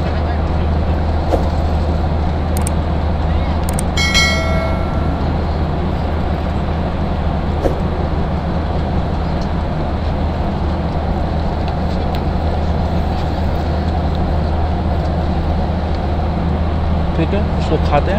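A steady low engine drone fills an aircraft cabin.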